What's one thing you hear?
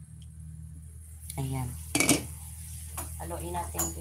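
A glass lid clinks as it is lifted off a pan.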